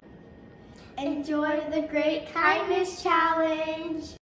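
Two young girls call out together excitedly, close by.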